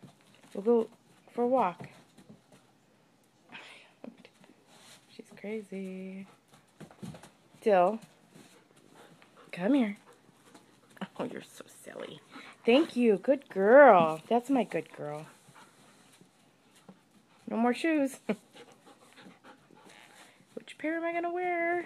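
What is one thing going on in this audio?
A dog whines and yelps close by, in short bursts.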